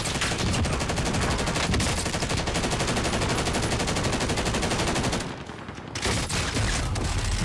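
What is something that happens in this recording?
Rapid automatic gunfire rattles in quick bursts.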